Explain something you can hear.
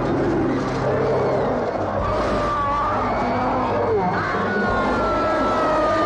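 A man screams in terror.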